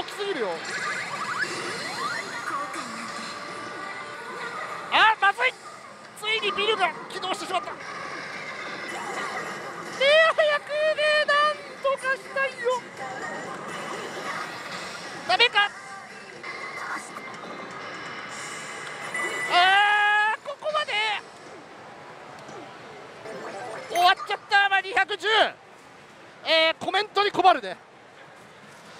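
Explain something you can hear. A slot machine plays jingling game music and electronic effects.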